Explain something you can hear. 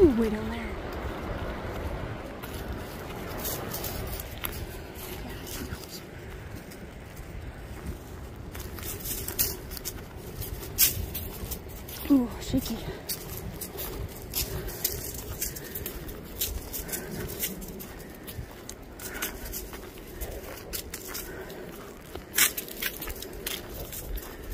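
Footsteps crunch steadily along a dirt trail.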